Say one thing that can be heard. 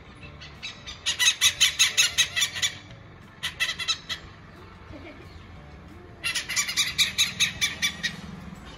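Hornbills call in loud, rapid cackling bursts close by.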